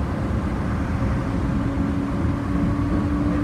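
A train's motor whines with a steady hum.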